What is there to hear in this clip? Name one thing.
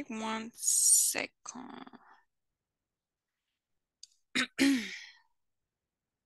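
A woman speaks briefly over an online call, in short bursts.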